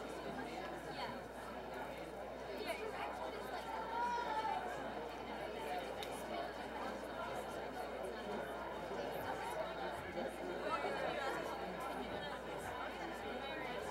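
An audience murmurs and chatters in a large room.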